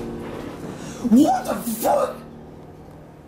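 A man speaks nearby in a squeaky, playful puppet voice.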